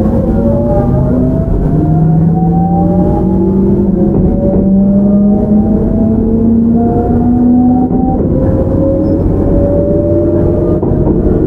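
Train wheels rumble steadily over the rails.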